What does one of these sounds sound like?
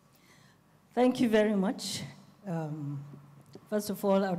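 An elderly woman speaks warmly into a microphone.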